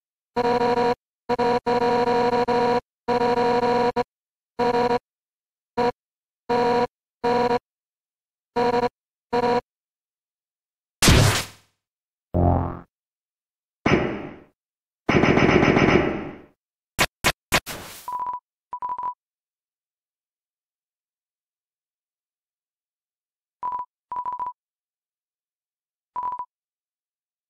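Electronic text blips chatter in quick bursts.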